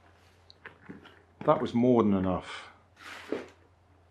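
A hard case is set down in a cardboard box with a soft knock.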